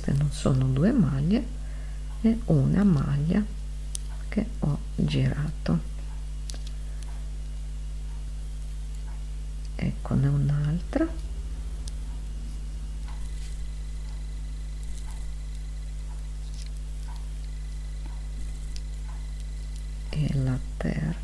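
Knitting needles click and tick softly against each other.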